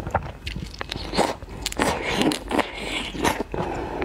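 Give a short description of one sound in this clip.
A young woman sucks and slurps loudly close to a microphone.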